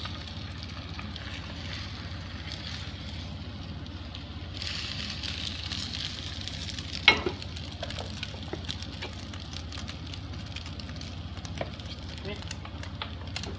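Chopsticks tap against a pan.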